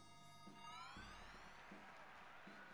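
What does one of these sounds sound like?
A bright electronic chime rises in pitch.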